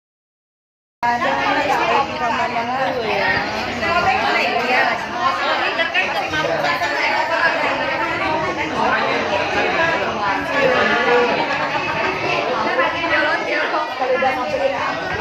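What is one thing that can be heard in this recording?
Women and men chat and laugh nearby.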